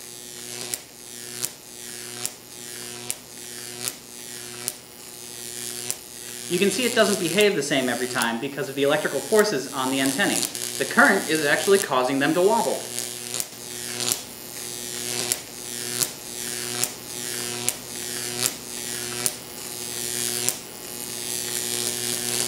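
An electric arc buzzes steadily and snaps sharply at regular intervals.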